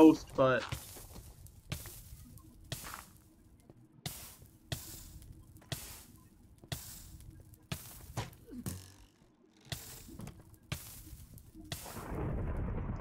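Footsteps crunch on stone at a steady pace.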